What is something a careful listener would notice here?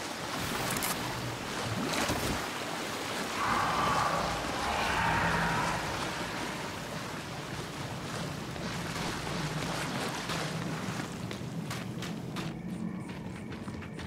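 Heavy boots thud on stone as a soldier walks.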